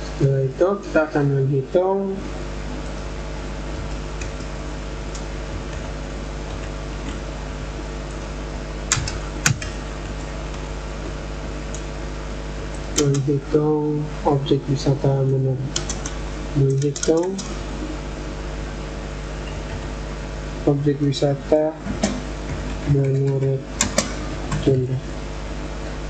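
A young man speaks calmly in short bursts, close to a microphone.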